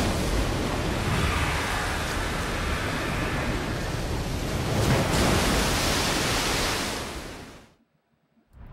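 Heavy rain pours down steadily.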